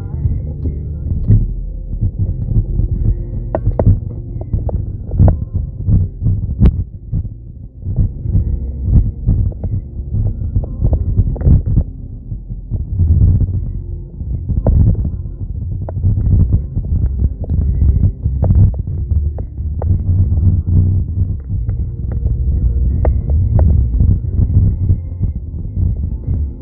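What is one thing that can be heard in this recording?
A car engine hums low and steady from inside the car as it drives.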